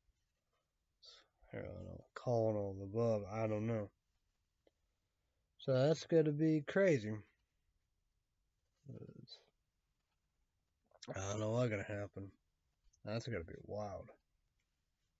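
A young man talks close to the microphone, in short bursts with pauses.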